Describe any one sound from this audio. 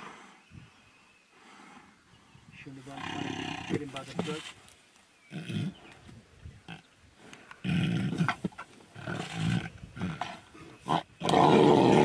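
Dry grass rustles under the struggling tigers.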